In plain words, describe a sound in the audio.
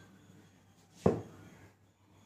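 A plastic bottle is set down on a counter with a knock.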